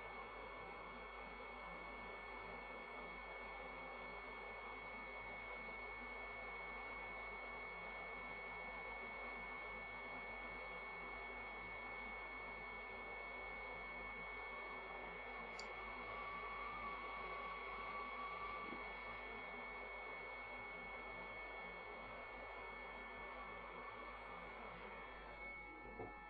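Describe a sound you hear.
A hot air gun blows with a steady hiss.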